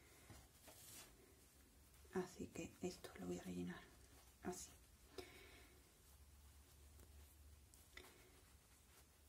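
Fabric rustles as hands fold it.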